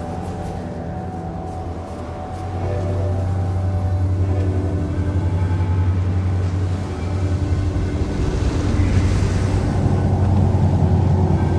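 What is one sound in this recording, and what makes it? Wind howls and roars through a snowstorm, growing stronger.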